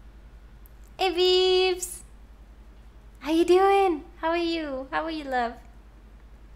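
A young woman speaks playfully in a high voice into a close microphone.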